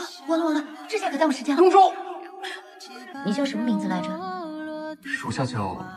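A young woman speaks with surprise.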